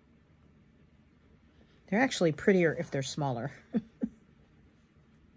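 Thread pulls softly through fabric.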